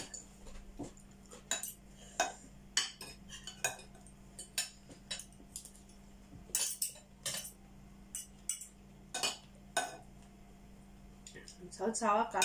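Metal spoons and forks clink and scrape against plates.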